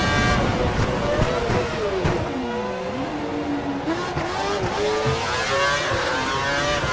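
A racing car engine drops sharply in pitch as the car brakes hard, then climbs again.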